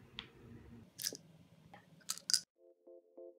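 Pills rattle in a plastic bottle.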